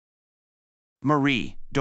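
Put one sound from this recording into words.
A young man speaks calmly, close up.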